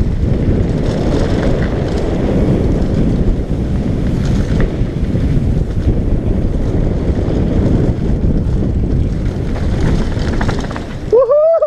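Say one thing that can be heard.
Bicycle tyres crunch and rattle over a gravel trail.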